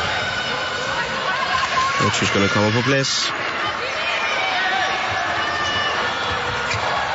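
A crowd cheers and chatters in a large echoing hall.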